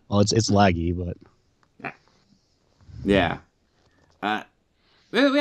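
A man speaks with animation into a microphone in short bursts.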